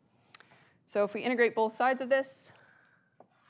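A woman speaks clearly through a microphone.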